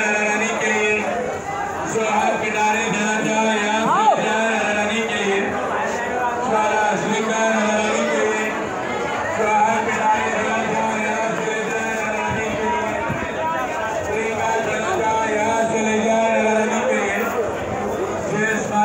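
A crowd of men and women chatter close by outdoors.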